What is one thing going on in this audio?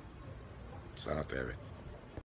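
An elderly man speaks briefly, close by.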